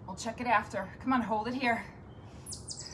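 A woman speaks with energy, close by.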